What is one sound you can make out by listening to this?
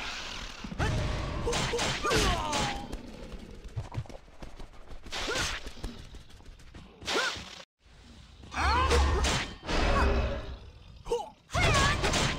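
Magic spells whoosh and chime in short bursts during a fight.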